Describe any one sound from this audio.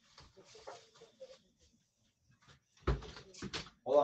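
A refrigerator door thumps shut.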